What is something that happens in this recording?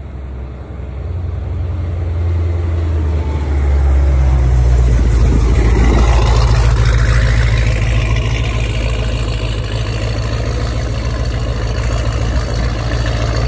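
A powerful car engine rumbles loudly and revs as the car pulls away.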